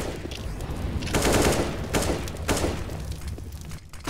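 Flames crackle and roar as fire burns on the ground.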